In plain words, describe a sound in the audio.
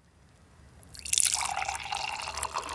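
Coffee pours from a pot into a mug, splashing and gurgling.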